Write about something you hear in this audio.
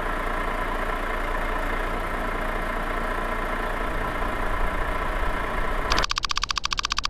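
A truck engine idles with a steady rumble.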